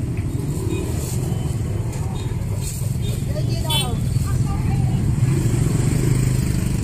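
A motorbike engine rumbles nearby.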